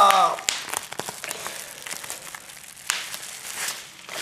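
Bubble wrap pops and crackles sharply between fingers.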